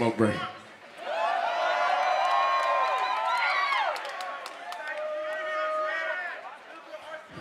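A large outdoor crowd cheers and sings along.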